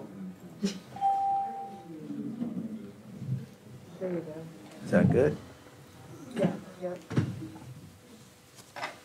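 A man speaks briefly through a microphone in a large room.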